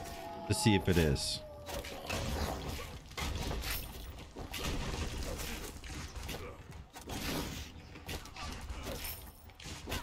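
Blades swish and clash in a fast fight.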